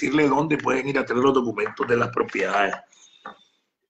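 A middle-aged man speaks with animation close to a phone microphone.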